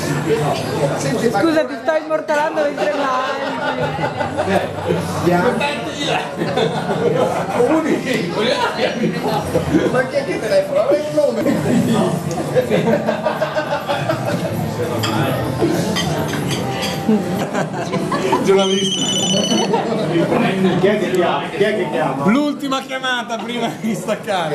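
Several men talk and laugh close by.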